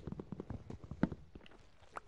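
A block of gravel crumbles as it is broken.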